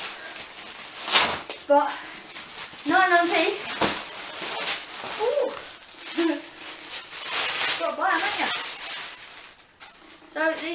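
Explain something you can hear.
Plastic wrapping rustles and crinkles as it is torn open.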